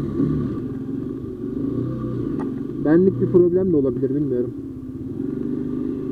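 A motorbike engine runs steadily and briefly revs up and down.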